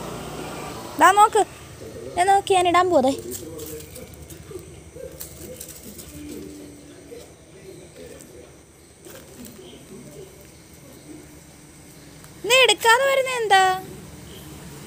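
A small dog whines and yelps close by.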